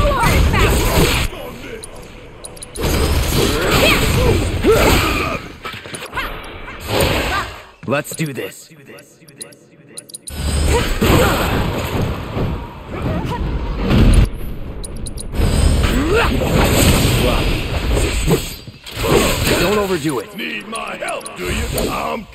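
Magic blasts crackle and burst with impact.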